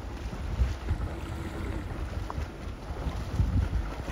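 A swimmer splashes through the water nearby.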